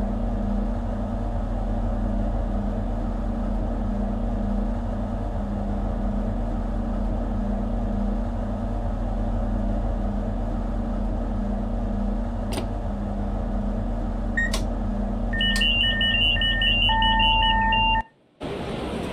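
A train engine hums steadily at idle.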